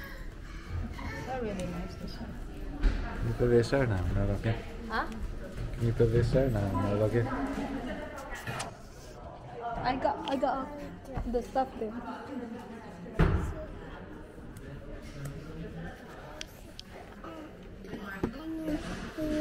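A young woman talks quietly close by.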